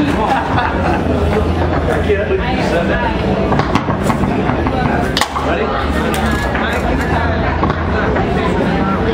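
A crowd of men chatter nearby.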